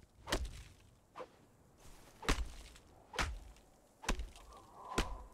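An axe chops into a tree trunk with regular thuds.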